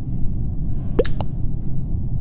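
A short game chat notification chimes.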